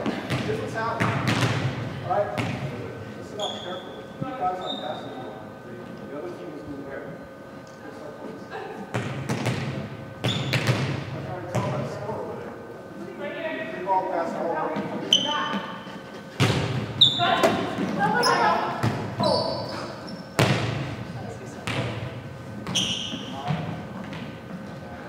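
A volleyball is struck with sharp smacks that echo around a large hall.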